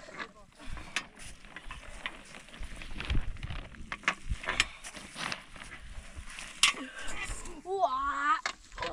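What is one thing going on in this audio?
A stone roller rumbles and scrapes over a packed earth roof.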